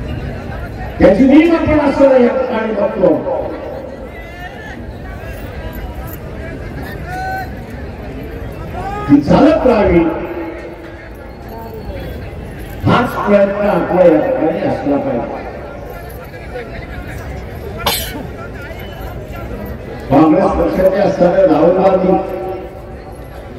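An elderly man speaks slowly and forcefully through a loudspeaker outdoors, with echo.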